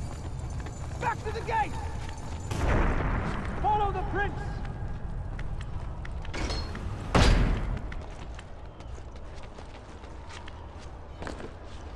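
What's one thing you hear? Footsteps run across stone.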